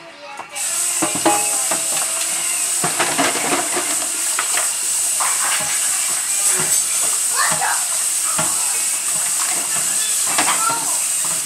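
Dishes clatter in a sink.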